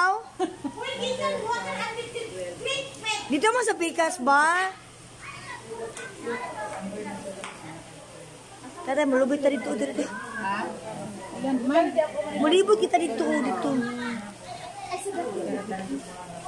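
Other women talk in the background.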